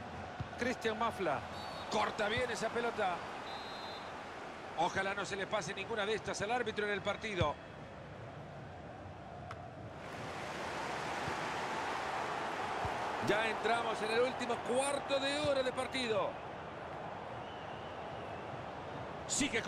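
A large stadium crowd murmurs and swells into a roar.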